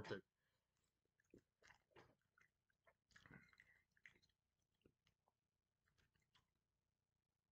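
A man chews food with soft mouth sounds.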